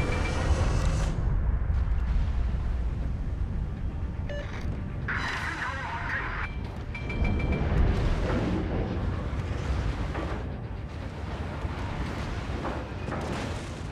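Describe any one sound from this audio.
Heavy naval guns boom and rumble.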